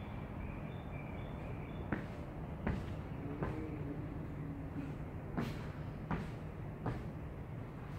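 Feet thump on a padded floor as a man hops.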